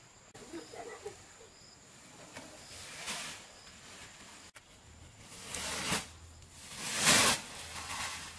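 Dirt scrapes and rustles as a woman scoops it into a plastic sack.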